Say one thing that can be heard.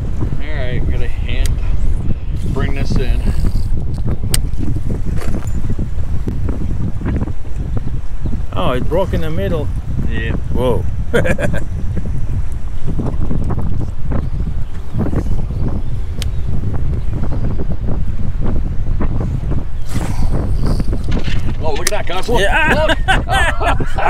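Wind rumbles steadily across open water.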